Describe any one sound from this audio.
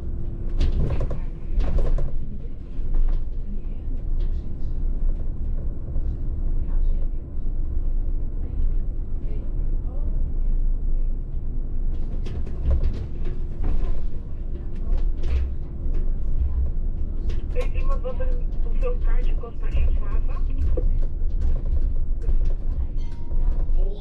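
Bus tyres roll and rumble over the road.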